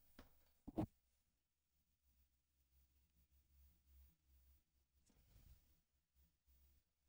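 A man speaks quietly and haltingly into a microphone.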